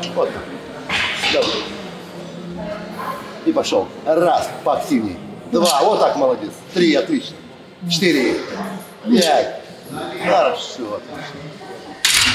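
A barbell's weight plates clank.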